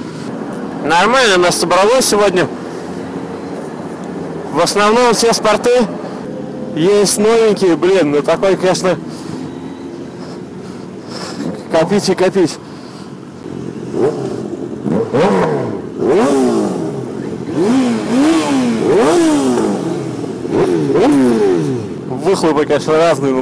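A motorcycle engine revs sharply up and down in bursts.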